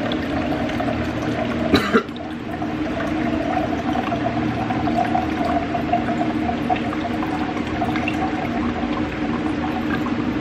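Water pours from a filter pitcher into a plastic tumbler.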